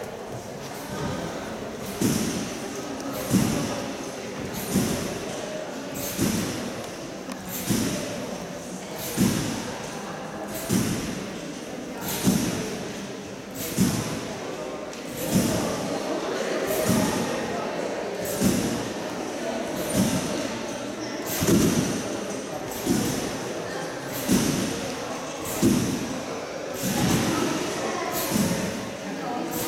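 A trampoline bed thumps and springs rhythmically as a gymnast bounces on it, in a large echoing hall.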